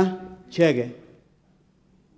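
A man speaks briefly through a microphone in a large hall.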